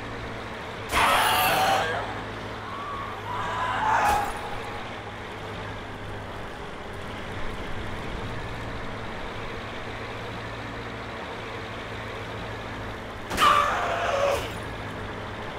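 Metal crashes loudly against a truck.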